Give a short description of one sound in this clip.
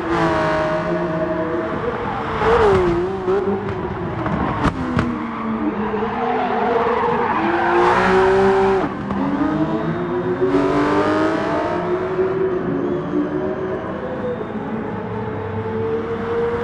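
Racing car engines roar and rev, rising and falling in pitch.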